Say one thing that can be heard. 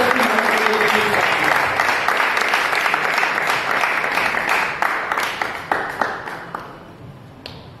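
A crowd applauds and claps.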